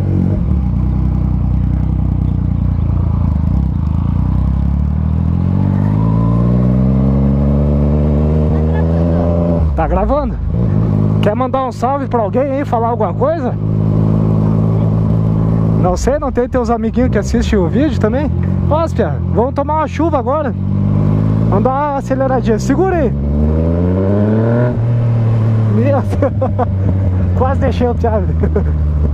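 A motorcycle engine hums and revs up as the bike gathers speed.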